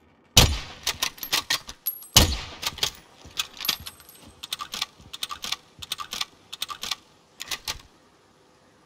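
A rifle is reloaded with sharp metallic clicks and clacks.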